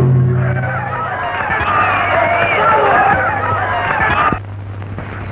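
Lively band music plays with a drum beating.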